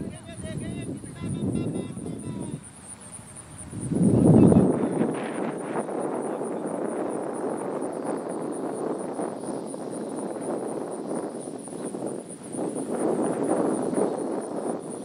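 Wind blows steadily outdoors in gusts.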